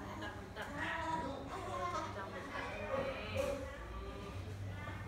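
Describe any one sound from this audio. A young woman talks softly nearby.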